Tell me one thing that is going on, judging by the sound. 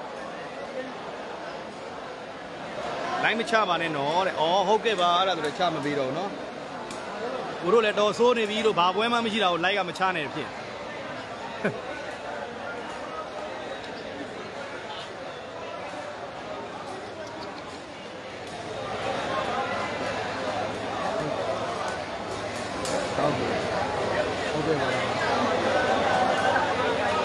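A large crowd chatters and shouts.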